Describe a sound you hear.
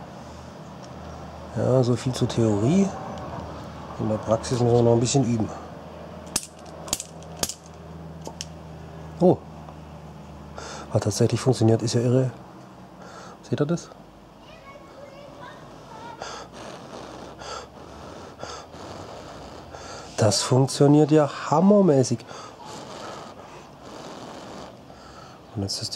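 Small plastic parts click and tap as a lighter is handled.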